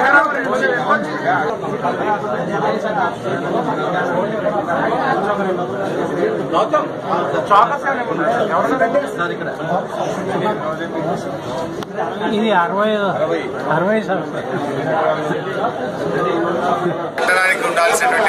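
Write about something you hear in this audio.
A crowd of men chatter loudly all around.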